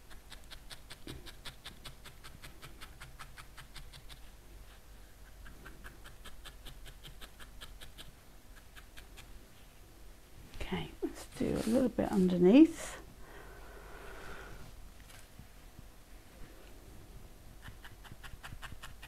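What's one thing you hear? A felting needle jabs rapidly into wool with quick, soft ticking.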